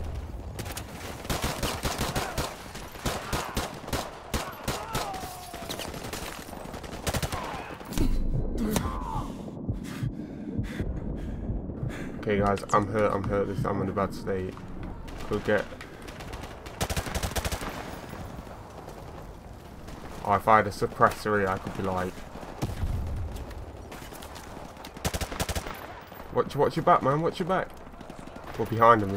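Rifles fire in rapid bursts of sharp shots.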